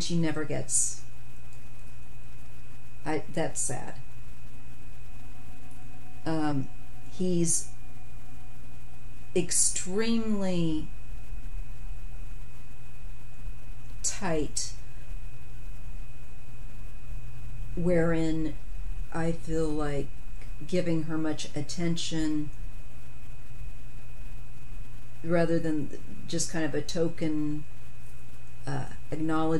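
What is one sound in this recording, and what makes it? A woman speaks calmly and with animation, close to a microphone, in short bursts with pauses.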